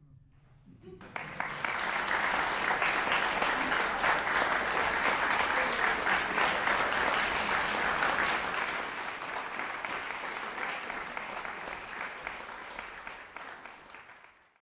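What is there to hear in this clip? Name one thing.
An audience applauds in a hall.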